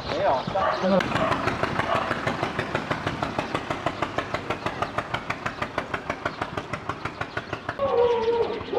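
A farm vehicle's engine chugs rapidly as it drives by and fades away.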